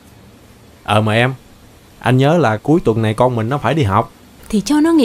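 A man speaks close by in a questioning tone.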